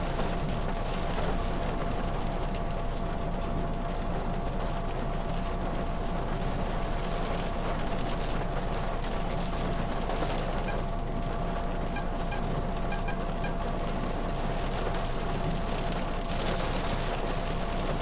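Tyres rumble over cobblestones.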